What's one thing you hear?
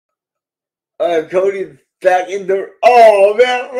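A middle-aged man talks and laughs into a microphone on an online call.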